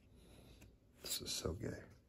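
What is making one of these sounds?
Cards slide against each other.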